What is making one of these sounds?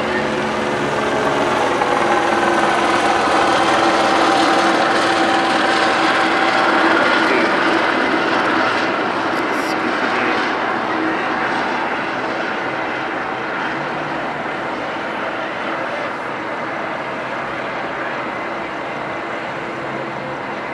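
Police sirens wail along a city street below.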